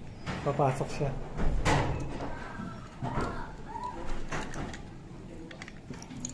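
A hand rivet tool clacks as its handles are squeezed.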